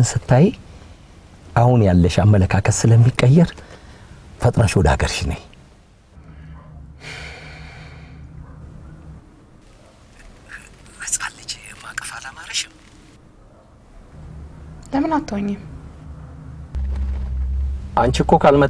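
A man talks on a phone with animation, close by.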